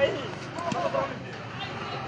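A plastic bat strikes a ball with a hollow knock.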